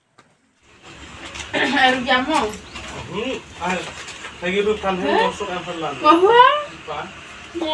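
Women talk and laugh with animation nearby.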